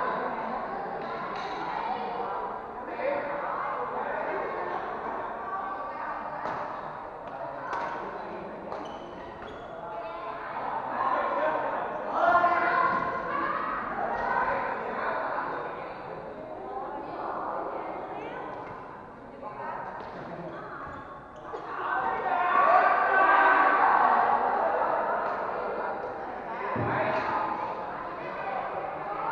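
A crowd of people chatter throughout a large echoing hall.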